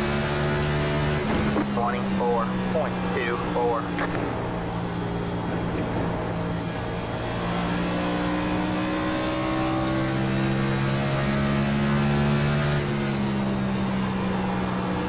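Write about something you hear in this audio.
A race car engine drones steadily at high speed, its pitch shifting slightly.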